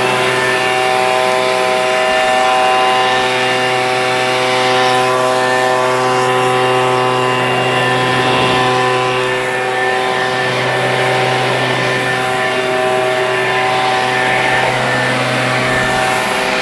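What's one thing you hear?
A leaf blower runs close by with a steady, loud motor whine and a rush of air.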